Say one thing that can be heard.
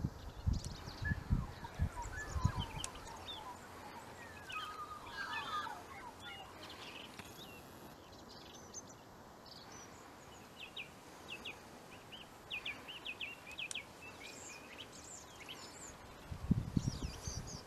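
Small birds chirp and twitter in a bush.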